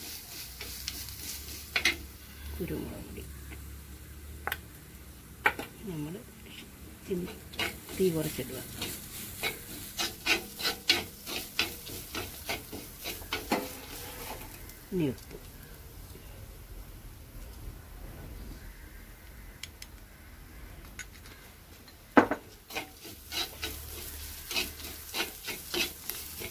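A metal spoon scrapes and clicks against a clay pot.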